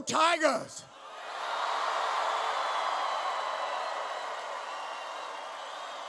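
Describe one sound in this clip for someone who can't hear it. A large crowd cheers and applauds in a large echoing hall.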